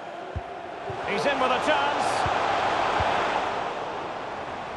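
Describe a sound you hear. A stadium crowd roars louder for a few seconds.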